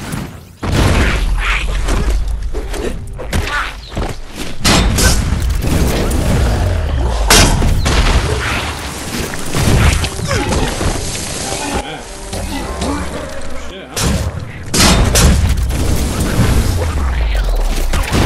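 Heavy blows thud and clang in a fight.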